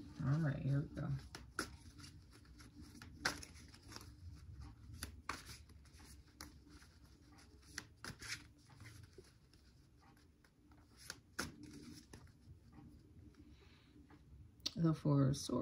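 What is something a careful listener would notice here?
Playing cards shuffle and flick with soft rustles.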